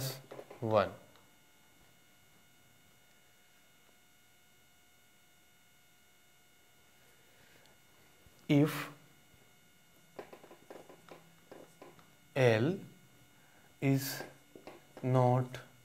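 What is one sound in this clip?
A man speaks in short bursts, calmly and close by.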